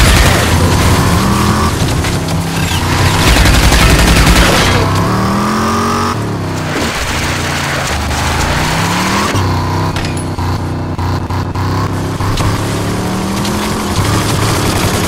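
Tyres crunch and skid on dirt and gravel.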